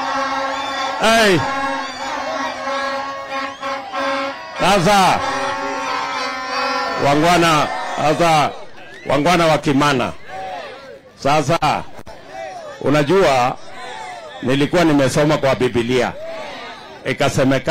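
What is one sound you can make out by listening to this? A man shouts to a crowd through a loudspeaker.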